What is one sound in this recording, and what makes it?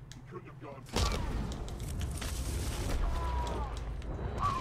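Punches and blows thud in a fight.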